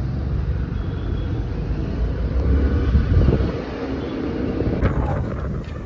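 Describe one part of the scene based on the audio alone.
A scooter engine hums while riding along a road.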